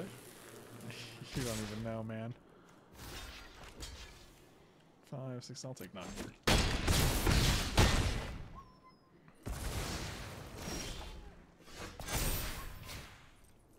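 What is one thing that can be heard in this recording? A man talks with animation into a microphone, heard close.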